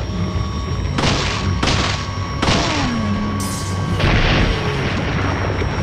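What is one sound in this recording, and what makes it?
A monster groans and snarls.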